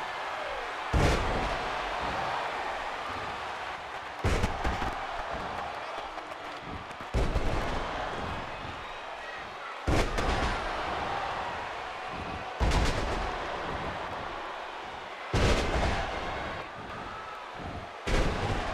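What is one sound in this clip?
Wrestlers' bodies slam onto a ring mat.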